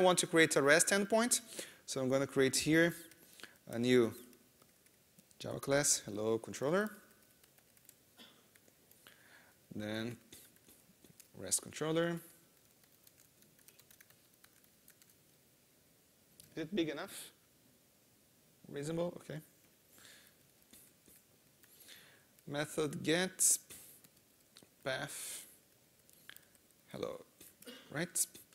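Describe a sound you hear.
Keys click on a laptop keyboard.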